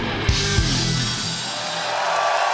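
An electric guitar rings out a final chord through loudspeakers.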